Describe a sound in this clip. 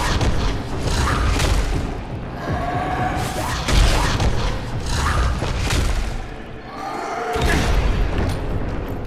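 A monster shrieks and snarls loudly.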